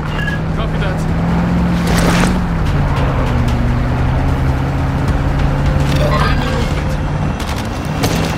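A vehicle engine hums steadily and shifts pitch.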